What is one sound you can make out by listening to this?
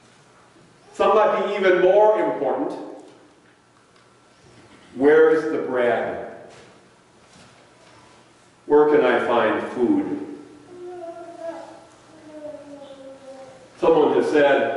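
A middle-aged man speaks loudly in short phrases, with pauses between them, in an echoing room.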